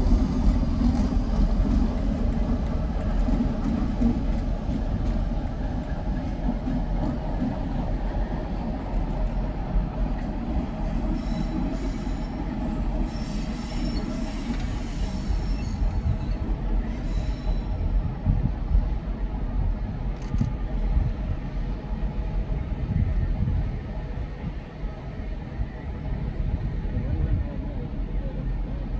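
A diesel locomotive engine idles with a deep, steady rumble.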